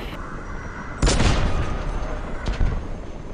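A heavy gun fires with a loud, booming blast.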